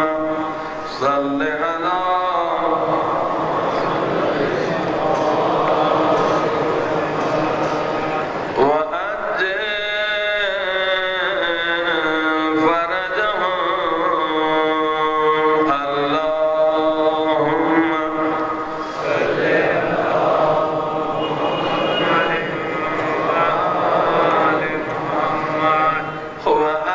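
A man recites in a melodic, chanting voice through a microphone, with an echo.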